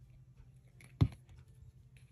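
A plastic bottle knocks down onto a table.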